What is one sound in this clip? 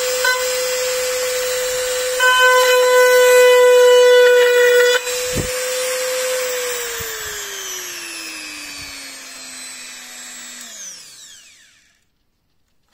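A small rotary tool whines at high speed, then winds down.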